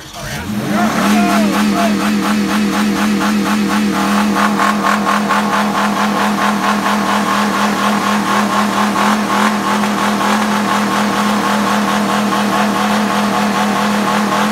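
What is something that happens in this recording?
A car engine idles steadily and loudly.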